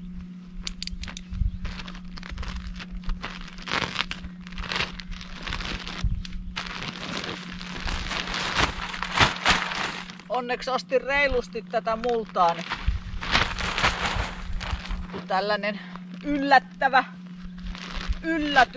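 A plastic sack rustles and crinkles as it is handled.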